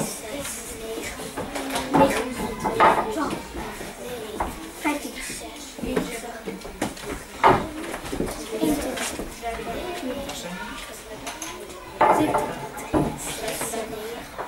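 Children chatter and talk in a busy room.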